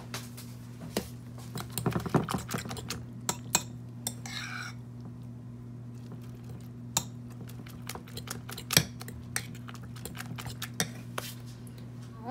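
A fork clinks against a bowl, whisking eggs.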